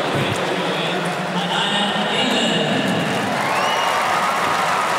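A crowd cheers and applauds loudly after a jump.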